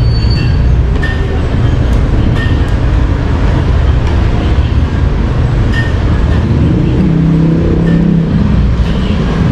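A spoon clinks against a plate.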